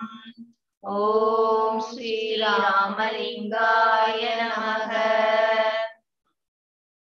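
An elderly man sings a slow, steady tune through an online call.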